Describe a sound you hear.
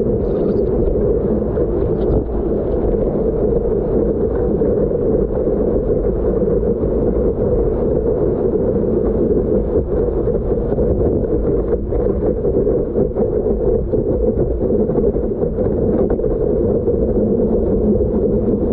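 Water rushes and splashes steadily against a moving surfboard.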